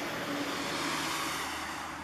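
A truck drives past on a wet road.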